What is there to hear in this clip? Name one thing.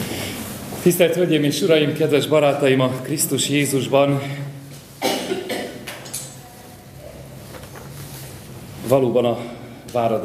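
A man speaks calmly to an audience from a short distance.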